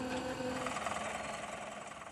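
A truck engine idles nearby.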